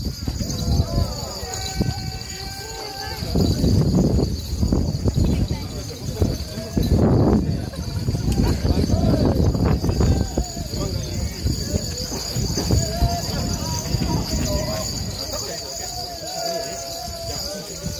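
A crowd of men chant and shout rhythmically close by.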